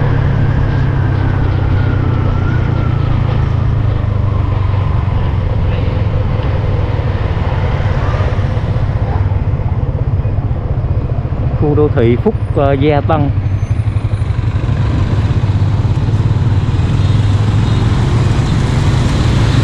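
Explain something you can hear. Wind rumbles steadily against a moving rider.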